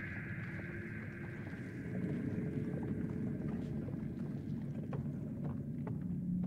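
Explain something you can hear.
A heavy body scrapes and drags across a rough floor.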